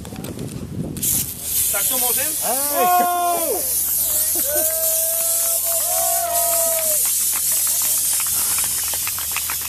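Champagne sprays out with a steady hiss.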